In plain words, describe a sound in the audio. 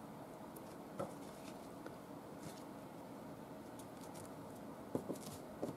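A card taps lightly against a tabletop.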